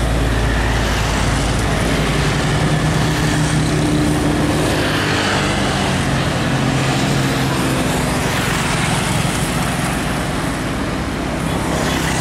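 A heavy truck engine rumbles steadily close by.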